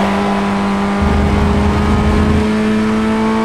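Car tyres rumble loudly over a kerb.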